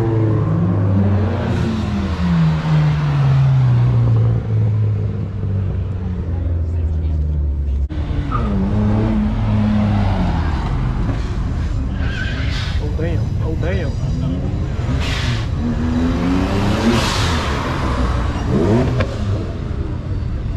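Sports cars accelerate past one after another, their engines revving hard through the gears.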